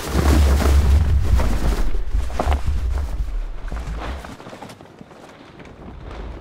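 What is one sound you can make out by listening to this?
A large sheet of fabric rustles and whooshes as it billows through the air.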